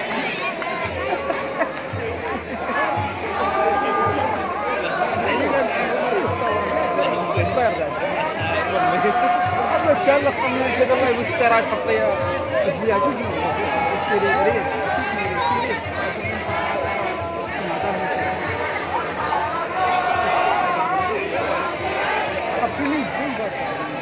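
A large outdoor crowd chants together loudly.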